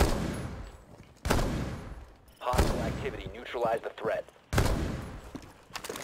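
Rifle shots ring out one at a time.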